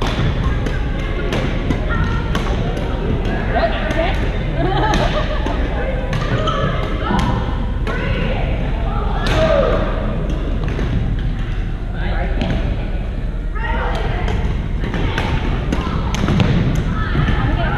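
Badminton rackets hit shuttlecocks with sharp pops in a large echoing gym.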